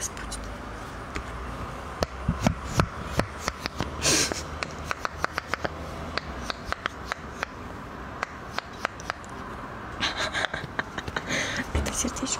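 Fingernails tap and scratch quickly on a rubber toy close to a microphone.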